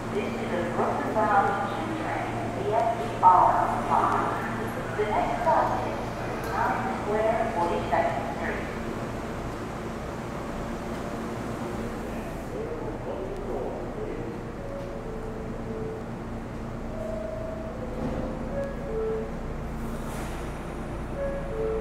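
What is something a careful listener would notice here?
A subway train stands at a platform with its doors open, its equipment humming.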